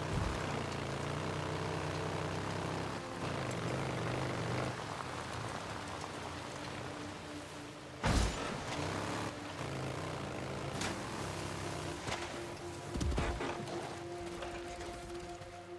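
A motorcycle engine roars and revs over rough ground.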